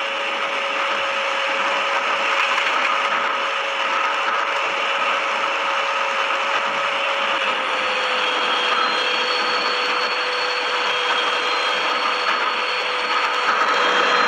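A train rolls steadily along rails with a rushing rumble.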